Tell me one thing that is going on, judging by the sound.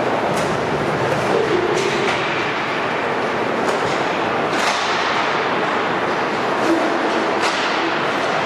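Hockey sticks clack against a ball or puck on a hard floor, echoing in a large hall.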